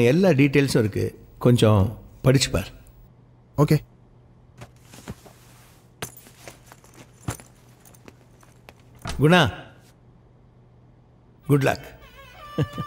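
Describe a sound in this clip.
A middle-aged man speaks calmly nearby.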